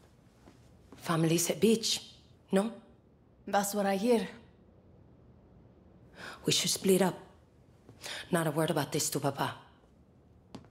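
A young woman speaks in a low, earnest voice.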